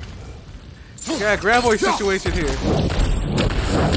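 A magical blast crackles and bursts loudly.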